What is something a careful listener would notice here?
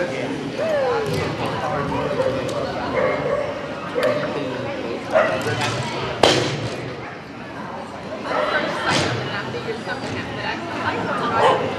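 A person calls commands to a dog in a large echoing hall.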